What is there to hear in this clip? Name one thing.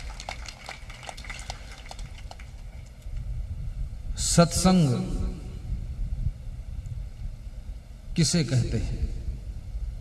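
A man speaks calmly into a microphone, heard through a loudspeaker system.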